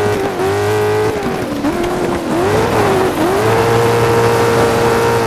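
Tyres crunch and skid on loose gravel.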